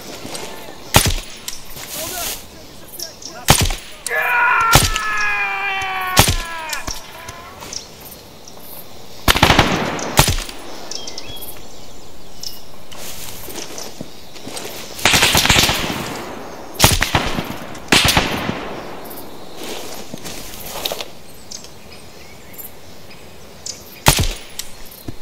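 Rifle shots crack one at a time, with pauses between them.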